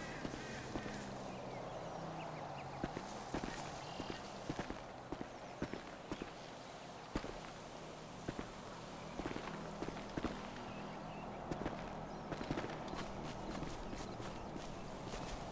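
Bushes rustle as someone pushes through them.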